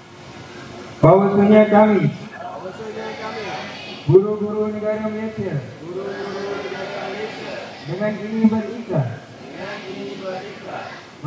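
A group of people sings together in unison, heard from a short distance.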